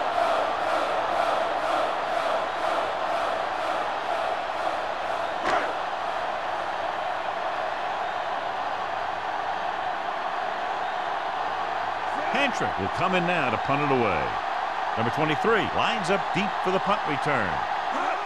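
A large stadium crowd murmurs and roars in the background.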